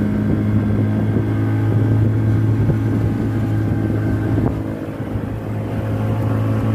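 Water rushes and splashes against the hull of a moving boat.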